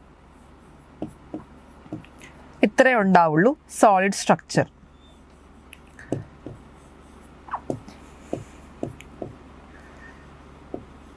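A stylus taps and clicks against a hard surface.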